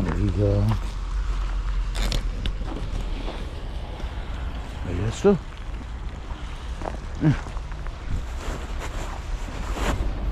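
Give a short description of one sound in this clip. Footsteps crunch in packed snow close by.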